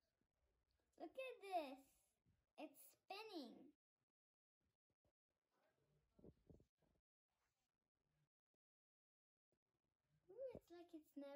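A young girl speaks cheerfully close by.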